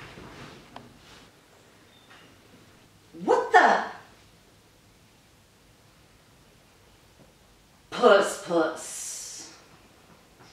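A middle-aged woman speaks with animation close by.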